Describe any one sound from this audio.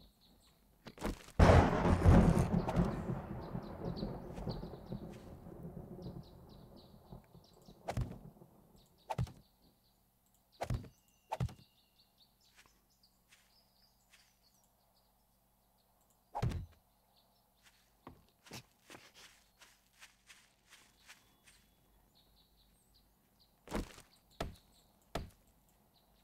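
Wooden objects thud heavily into place, again and again.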